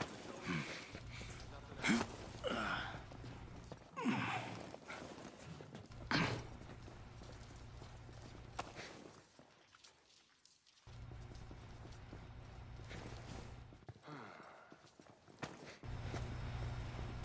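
Footsteps scuff on concrete as a soldier moves and crouches.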